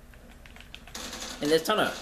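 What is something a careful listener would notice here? Rapid gunshots crack from a rifle.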